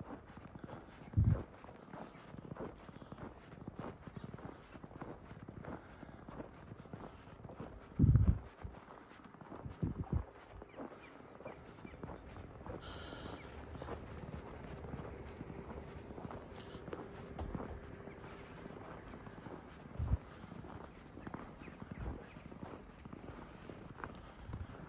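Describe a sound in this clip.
Footsteps crunch on packed snow at a steady walking pace.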